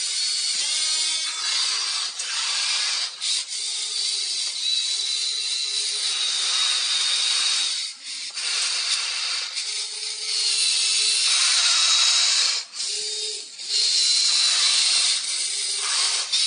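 A toy loader's electric motors whine steadily as it moves.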